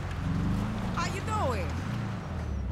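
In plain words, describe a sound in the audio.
Tyres screech briefly on the road.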